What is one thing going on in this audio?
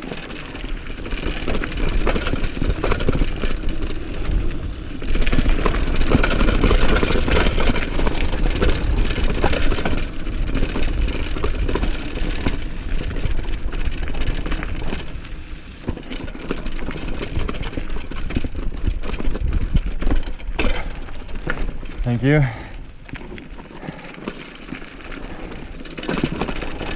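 Mountain bike tyres roll downhill over dirt and rocks.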